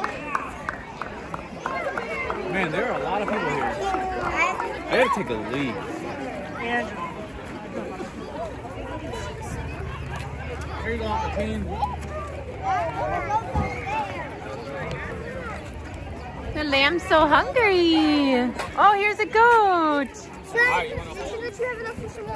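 Young children talk and chatter close by.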